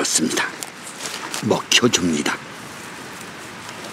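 A goat munches and tears at leafy plants up close.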